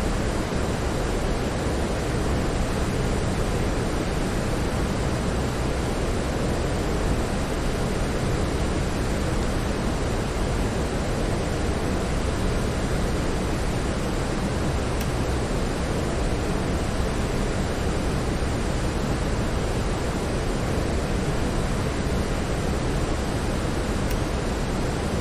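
Jet engines roar steadily, heard from inside an aircraft.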